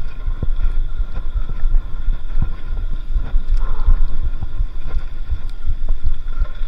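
Wind rumbles and buffets against a microphone outdoors.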